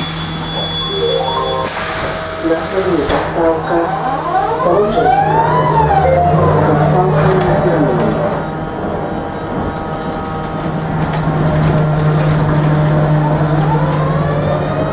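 An electric motor whines, rising and then falling in pitch.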